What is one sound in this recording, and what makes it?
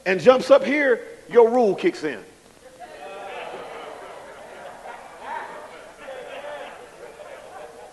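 A man preaches with emphasis into a microphone.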